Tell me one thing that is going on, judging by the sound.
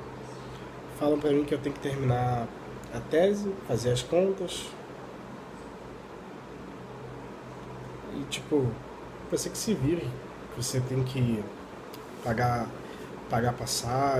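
A young man talks casually close to the microphone.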